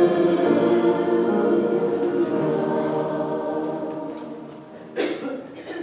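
An upright piano plays sustained chords that fade away.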